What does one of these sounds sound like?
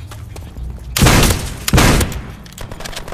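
A gun fires in loud, sharp bursts.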